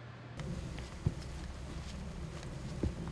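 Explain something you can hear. Footsteps crunch on a gravel path outdoors.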